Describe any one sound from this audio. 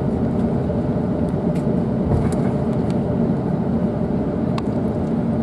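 A steady engine rumble drones inside a moving aircraft cabin.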